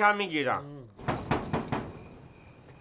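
A man knocks hard on a wooden door.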